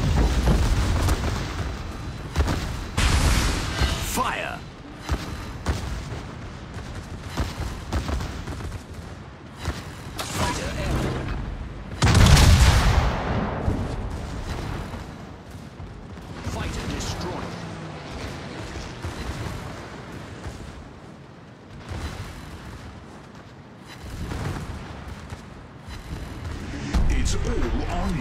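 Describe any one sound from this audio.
Shells explode with sharp bangs.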